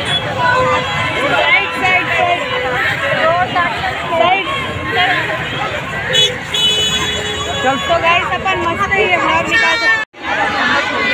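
A teenage boy talks close by, with animation.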